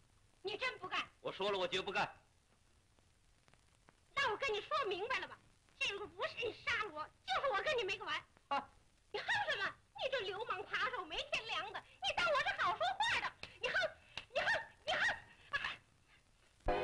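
A woman speaks with agitation, close by.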